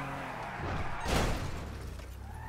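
A car thumps hard against a kerb.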